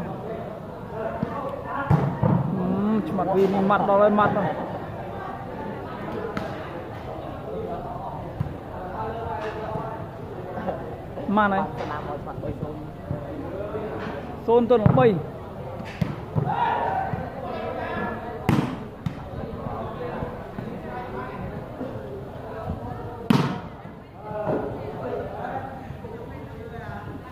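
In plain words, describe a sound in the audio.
Young men shout and call out during a volleyball game in a large hall with a metal roof.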